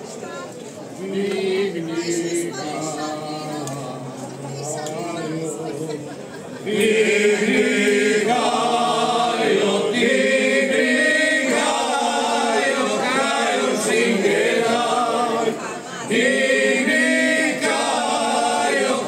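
A group of older men sing together into microphones outdoors.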